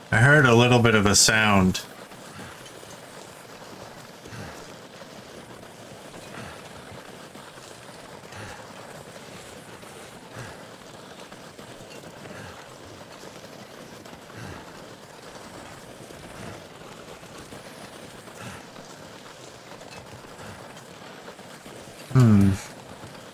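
Wind blows steadily across open snow.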